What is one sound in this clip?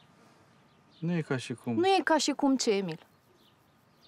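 A woman talks calmly up close.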